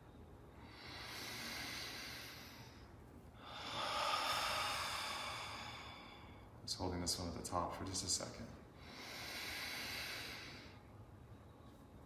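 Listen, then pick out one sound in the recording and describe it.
Several people breathe in and out slowly and deeply.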